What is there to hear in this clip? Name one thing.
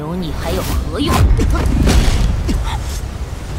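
A woman speaks coldly and clearly, close by.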